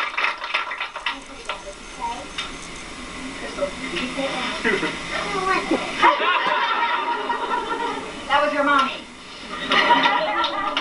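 A crowd of men and women chatters and calls out nearby.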